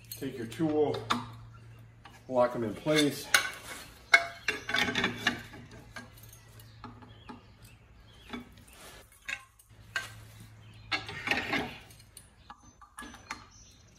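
Metal parts clink and rattle under a man's hands.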